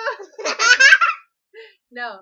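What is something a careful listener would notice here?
A young boy laughs close by.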